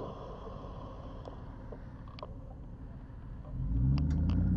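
A car engine idles quietly nearby.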